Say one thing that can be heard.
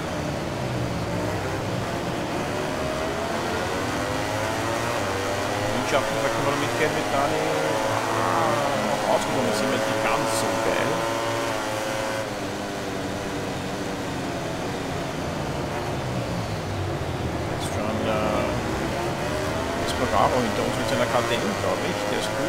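Racing motorcycle engines roar and whine, rising in pitch as they speed up and dropping as they brake.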